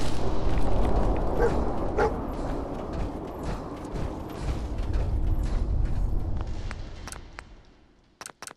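Heavy metal footsteps clank and thud on the ground.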